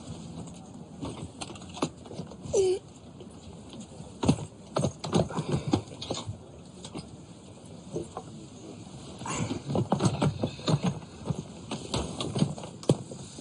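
Bags thump and knock as they are pushed onto a rack.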